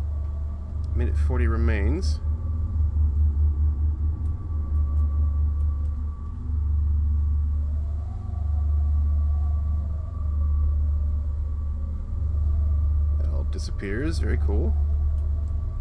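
A man speaks up close into a microphone.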